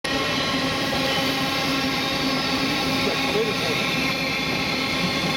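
A passenger train rushes past close by with a steady roar.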